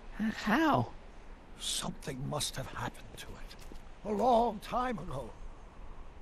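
An elderly man speaks thoughtfully.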